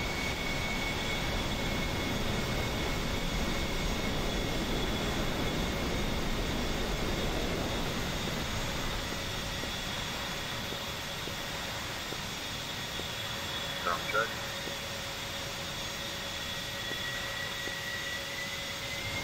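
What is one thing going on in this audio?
A jet engine whines and roars steadily at idle.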